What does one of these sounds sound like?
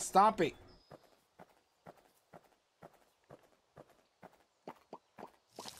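Footsteps tread at a steady walking pace.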